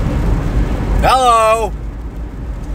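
A young man gives a short hum-like laugh close by.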